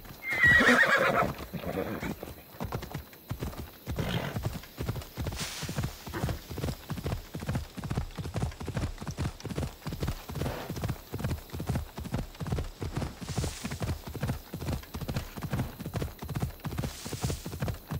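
A horse gallops with fast, rhythmic hoofbeats.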